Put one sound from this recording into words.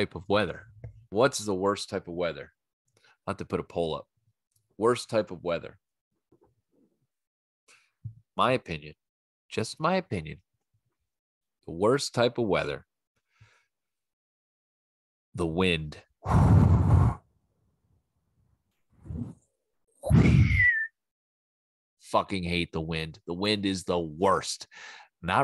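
A man talks with animation close to a microphone, with pauses.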